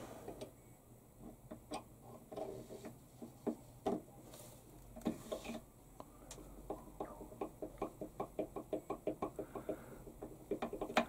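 A metal rod clicks and scrapes as it is turned by hand.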